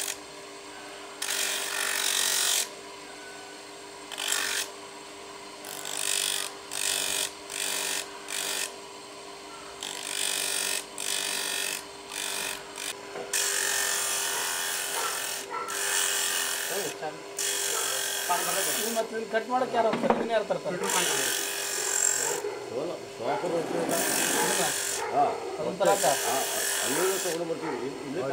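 A spinning grinding wheel whines as it grinds a small piece of shell in bursts.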